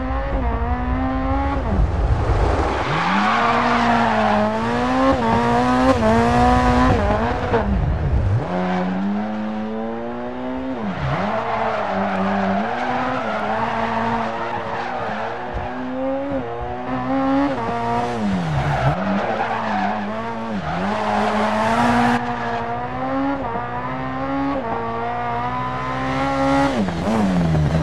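A rally car engine revs hard, rising and falling as the gears change.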